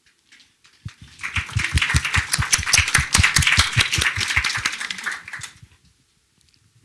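An audience claps loudly in a room.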